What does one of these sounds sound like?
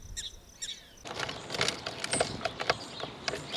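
Several sparrows chirp busily.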